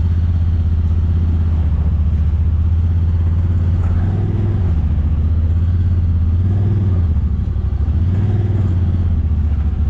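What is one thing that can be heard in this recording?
An off-road vehicle's engine rumbles steadily, close by.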